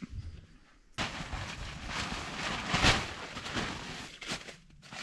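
A sleeping bag rustles as it is spread out.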